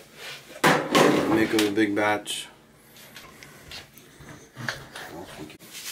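A plastic bucket lid is handled with a few knocks.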